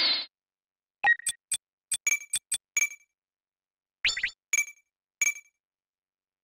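Short electronic menu beeps click in quick succession.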